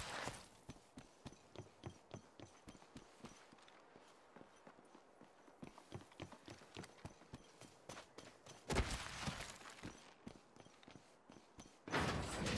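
Quick footsteps run steadily over hard ground.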